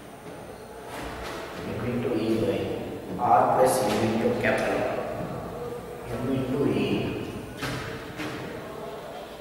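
A man speaks calmly in a room with some echo.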